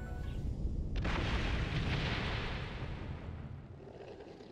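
An explosion bursts with a deep roar.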